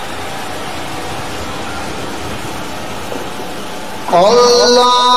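A large crowd of men murmurs and shuffles.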